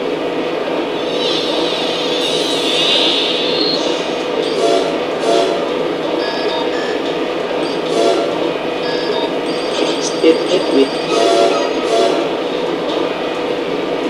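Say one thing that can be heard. A television plays electronic whooshes and beeps from a game menu.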